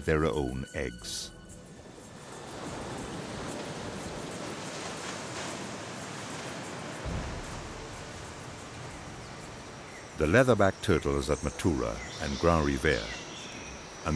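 Waves wash and break on a shore.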